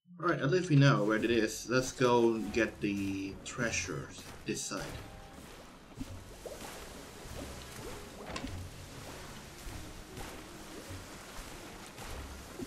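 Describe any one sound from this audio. Waves wash softly around a small sailing boat.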